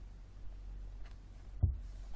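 A book's pages riffle and flap.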